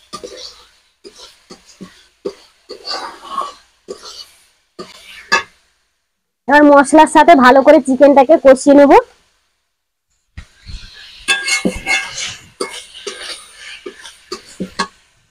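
A metal spatula scrapes and knocks against a wok.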